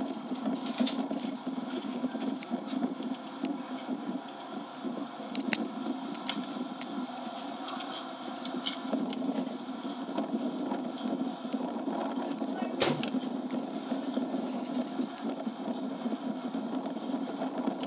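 A horse's hooves thud on soft sand at a canter.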